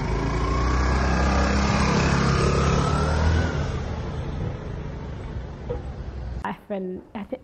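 A scooter engine hums and pulls away outdoors.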